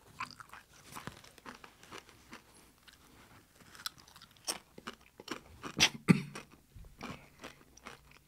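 A man chews food with crunching sounds, close by.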